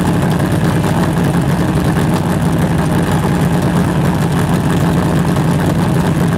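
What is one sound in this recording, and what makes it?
A car engine idles with a steady, deep rumble from a nearby exhaust pipe.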